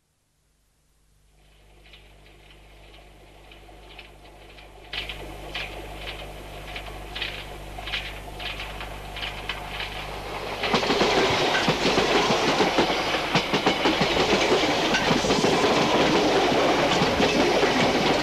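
A train approaches along the tracks and roars past close by.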